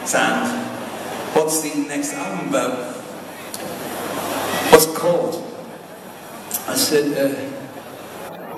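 Live music plays loudly through loudspeakers in a large echoing hall.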